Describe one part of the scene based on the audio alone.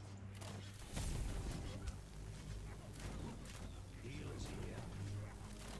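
Weapons clash in a distant battle.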